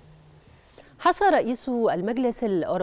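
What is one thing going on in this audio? A woman speaks clearly into a microphone, like a news presenter reading out.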